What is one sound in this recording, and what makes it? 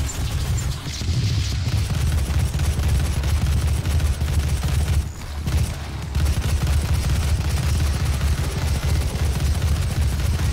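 Game gunfire and explosions boom heavily and without a break.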